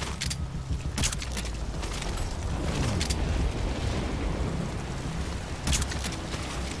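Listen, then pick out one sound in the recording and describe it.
A silenced pistol fires with soft, sharp pops.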